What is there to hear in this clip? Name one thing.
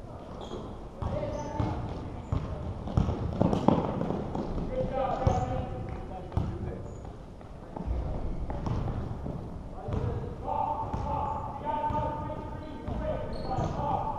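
Young players shout across a large echoing gym.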